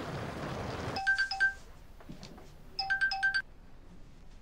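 A phone plays short electronic beeps in quick bursts.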